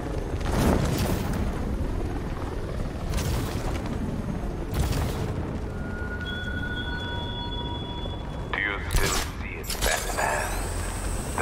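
Wind rushes loudly past during a fast glide.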